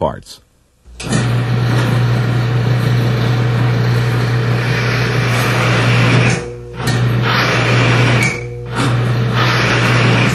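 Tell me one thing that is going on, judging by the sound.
An electric motor hums steadily and loudly.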